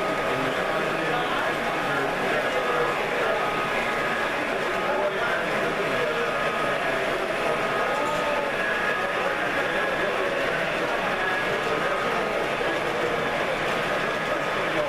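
A model train rumbles and clicks along its tracks.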